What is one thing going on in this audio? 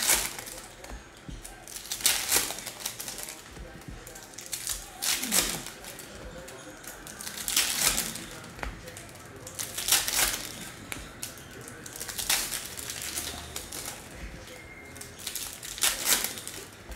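Foil wrappers crinkle and rustle in someone's hands.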